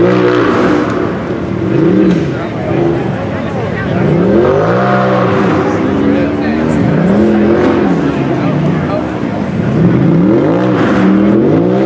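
An off-road buggy's engine revs hard, rising and falling in pitch.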